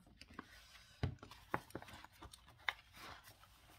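A pen cap clicks.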